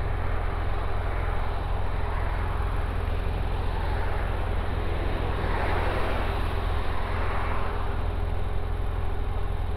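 Wind buffets a microphone steadily outdoors.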